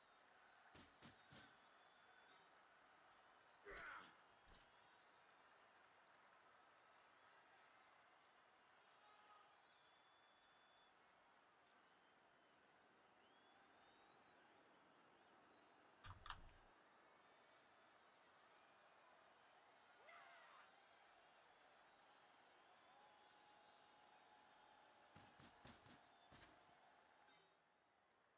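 Game sound effects click and chime.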